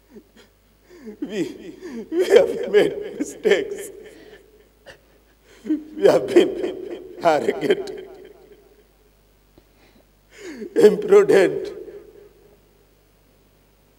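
A man speaks with anguish in loud bursts, heard through a microphone in a large hall.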